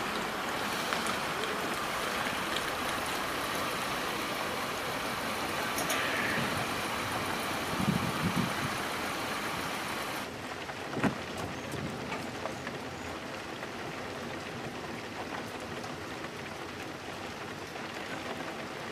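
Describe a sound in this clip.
Rain patters steadily on a car windscreen.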